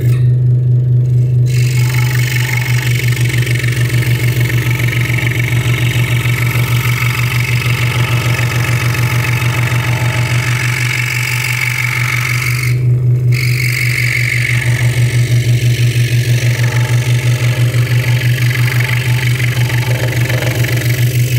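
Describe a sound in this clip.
A scroll saw blade buzzes as it cuts through thin wood.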